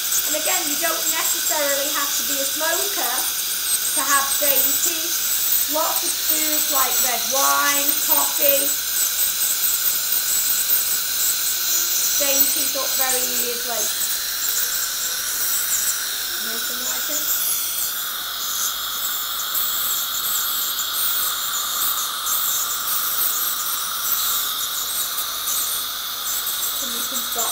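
A suction tube hisses steadily, close by.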